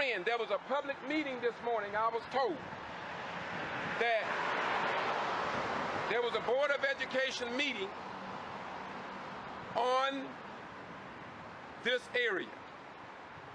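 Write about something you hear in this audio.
A man speaks close by, in short bursts, outdoors.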